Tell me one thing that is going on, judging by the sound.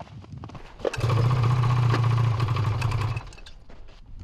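A snowmobile engine hums steadily.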